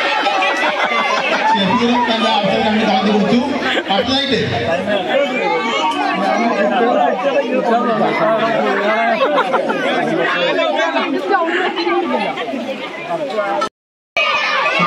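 Men talk loudly and laugh close by.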